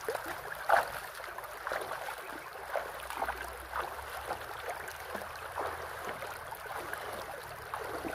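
Bare feet splash through shallow water.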